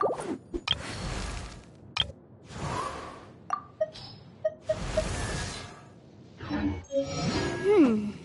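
Short menu chimes and clicks sound.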